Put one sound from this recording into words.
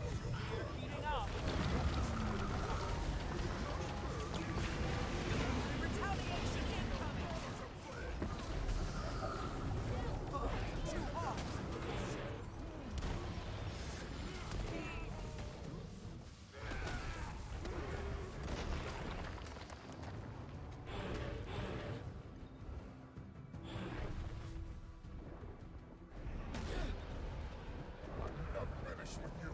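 Game combat effects crash and clang with magical bursts.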